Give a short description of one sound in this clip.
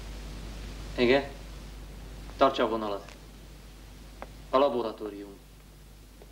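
A man speaks into a telephone in short, tense phrases.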